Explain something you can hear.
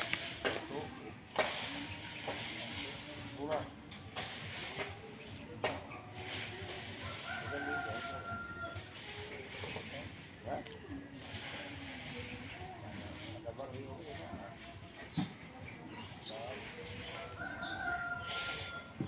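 A broom sweeps and scrapes across a hard ground outdoors.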